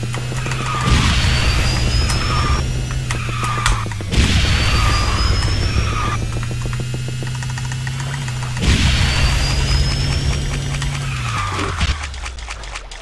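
A racing game's kart engine drones steadily, with whooshing boosts.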